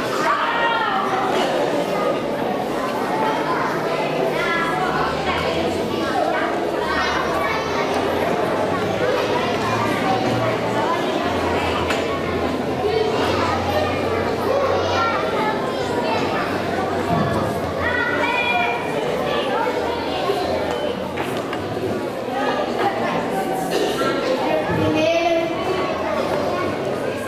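A woman talks with young children nearby.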